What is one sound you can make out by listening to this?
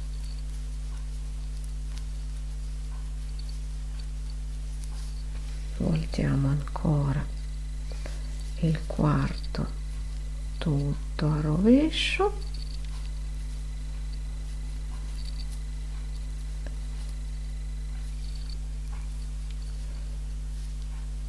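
Metal knitting needles click softly against each other.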